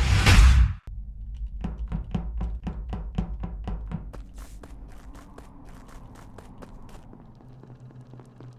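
Small footsteps patter quickly in a steady rhythm.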